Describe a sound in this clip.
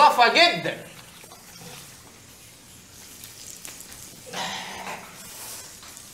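Water runs from a tap and splashes in a sink.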